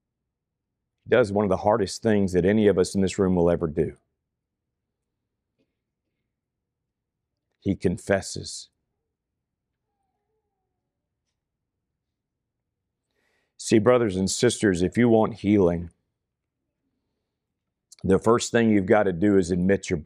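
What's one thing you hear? A middle-aged man speaks calmly into a microphone, pausing between phrases.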